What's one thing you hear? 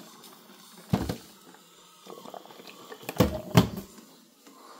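A plastic lid on a coffee maker clicks open and snaps shut.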